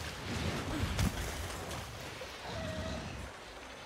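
Water splashes as a fighter runs through it.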